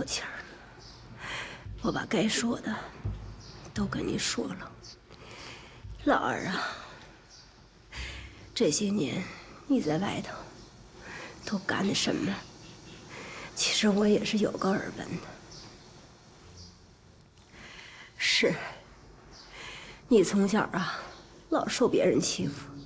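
A middle-aged woman speaks nearby in a weary, reproachful tone.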